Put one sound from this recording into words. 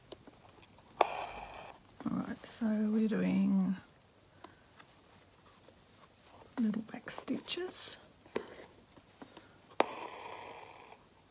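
Fabric rustles and crinkles under handling hands.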